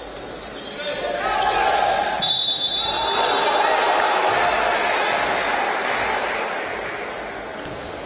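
A crowd cheers loudly in an echoing hall.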